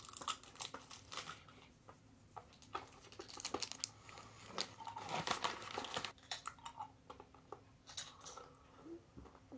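A young woman chews crunchy food close to the microphone.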